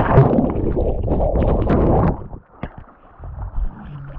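Water gurgles and churns underwater.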